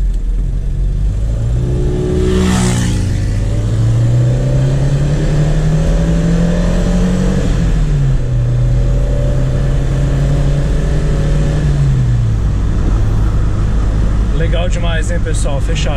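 A car engine hums from inside the car and revs up and down through the gears.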